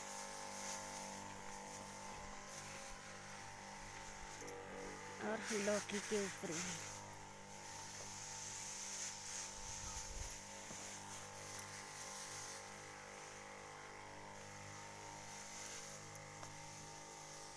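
A pressure sprayer hisses as it mists a fine spray.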